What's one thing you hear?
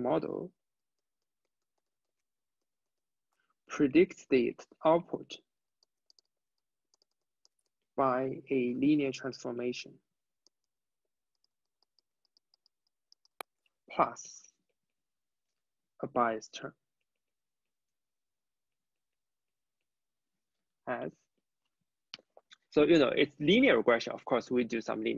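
A young man speaks calmly into a close microphone, pausing often.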